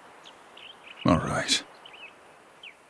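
A man speaks briefly in a low, gruff voice.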